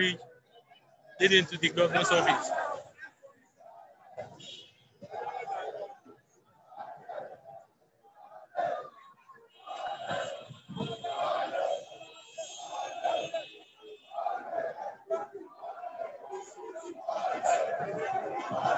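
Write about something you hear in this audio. A crowd of men shouts outdoors.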